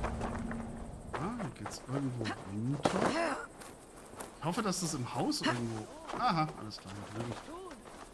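A young woman talks calmly and close to a microphone.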